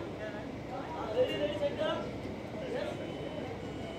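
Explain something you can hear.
Men call out loudly nearby.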